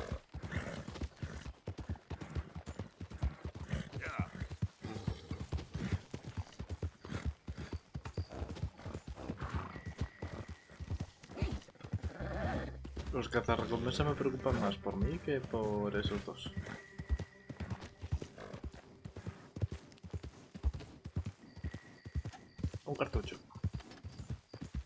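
Horse hooves thud steadily on soft ground.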